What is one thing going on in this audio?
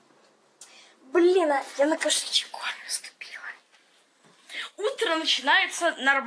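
A young girl talks with animation, close by.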